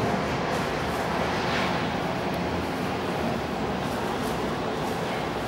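Traffic hums steadily across an open city square.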